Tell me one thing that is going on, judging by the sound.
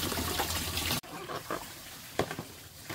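Water splashes as a basin is tipped out onto the ground.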